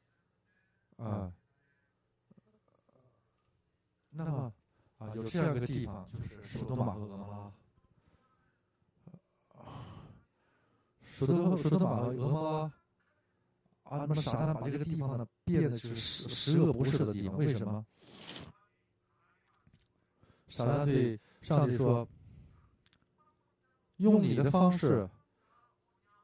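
An elderly man lectures with animation through a microphone, pausing between phrases.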